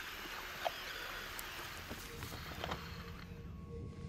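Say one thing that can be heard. A sheet of paper rustles.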